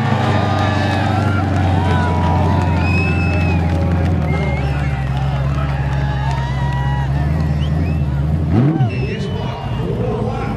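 Tyres squeal loudly as they spin.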